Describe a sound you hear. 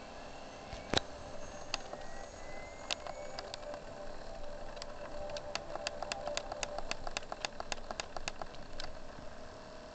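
A short musical jingle plays through a television speaker.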